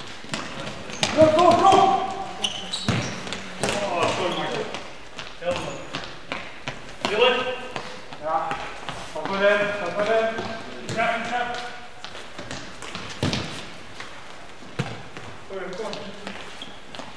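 Men shout and call out across an echoing hall.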